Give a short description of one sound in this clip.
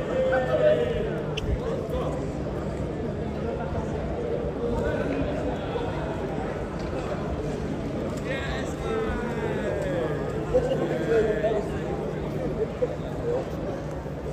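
Outdoor crowd noise hums steadily.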